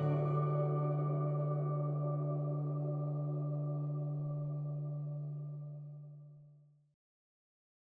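An acoustic guitar chord rings out and slowly fades away.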